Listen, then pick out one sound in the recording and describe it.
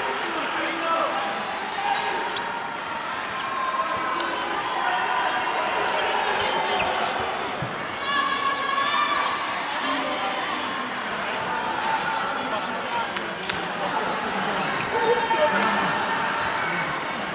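Men shout excitedly close by.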